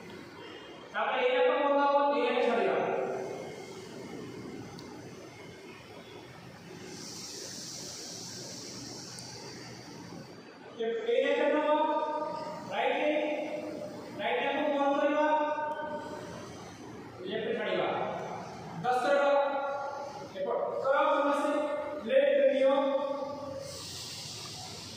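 A group of men and women hum together in long, steady tones, with the sound echoing around the room.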